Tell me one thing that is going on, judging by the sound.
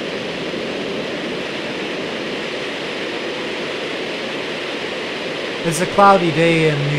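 A jet's engines roar loudly at full power.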